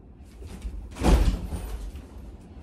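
A body flops onto a bed with a soft thud.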